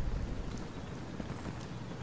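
Footsteps run across sandy ground.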